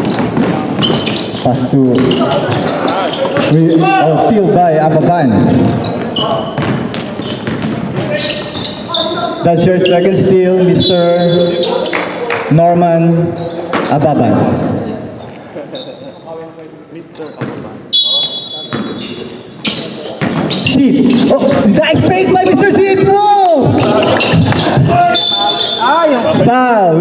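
Young men shout and call out to each other in an echoing gym.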